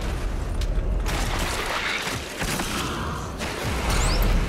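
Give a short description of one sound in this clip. A monster bursts apart with a wet, crunching splatter.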